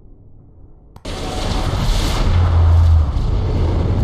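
A deep, roaring whoosh bursts in suddenly and swells loudly.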